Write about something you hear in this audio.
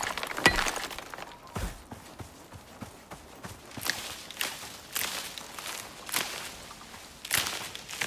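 Footsteps rustle through grass at a steady pace.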